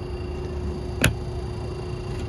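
A charging plug clicks as it is pulled out of a car.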